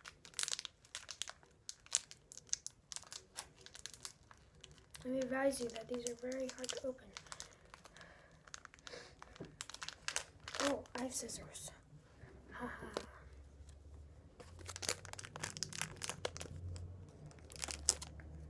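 Plastic crinkles and rustles in hands.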